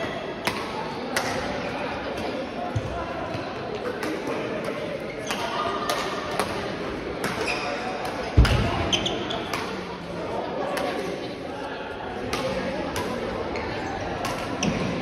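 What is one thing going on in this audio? Sports shoes squeak on the court floor.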